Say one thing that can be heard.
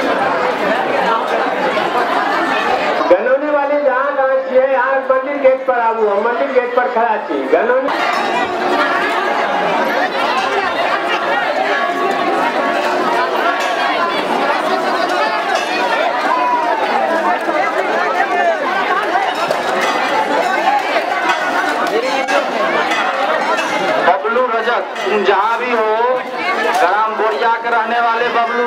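A large crowd shouts and chants.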